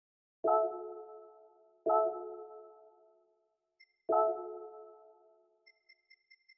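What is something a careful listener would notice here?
A bright electronic chime rings out three times, each note fading slowly.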